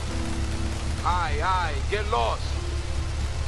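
A man speaks threateningly.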